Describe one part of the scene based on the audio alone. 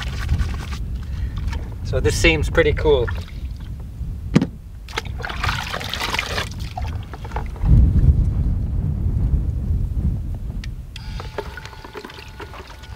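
A man handles a plastic bucket and hose.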